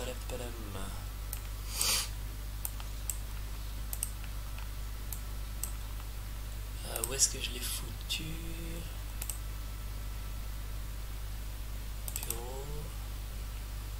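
A man speaks briefly and calmly, close to a microphone.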